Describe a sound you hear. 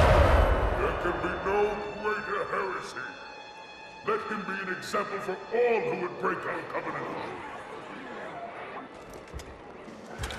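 A deep, gruff creature voice proclaims loudly.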